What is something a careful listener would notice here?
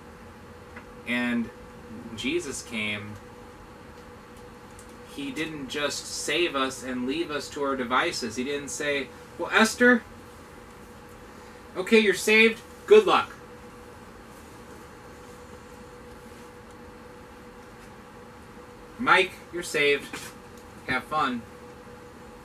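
A man speaks nearby, pausing often.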